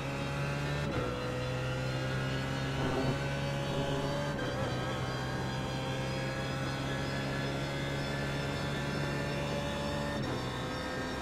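A race car engine briefly drops in pitch as gears shift up.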